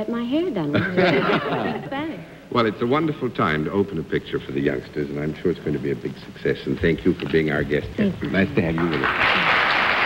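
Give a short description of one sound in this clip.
A middle-aged man talks and laughs through a microphone.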